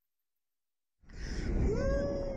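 Wind rushes loudly past a microphone.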